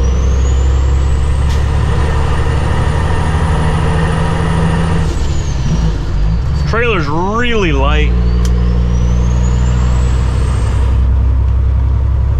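Tyres roar on the road.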